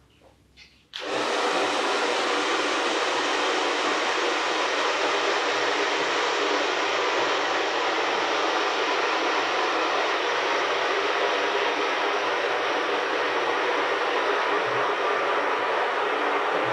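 A hair dryer blows with a loud, steady roar.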